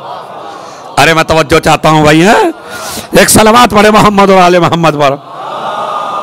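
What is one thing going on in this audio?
A man recites in a loud, drawn-out, melodic voice through a microphone.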